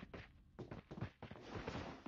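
Metal ladder rungs clank as a game character climbs.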